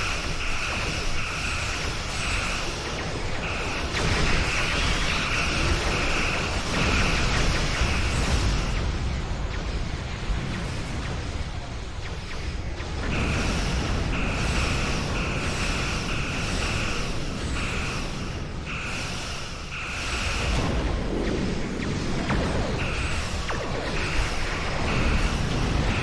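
An alarm beeps in short, repeated pulses.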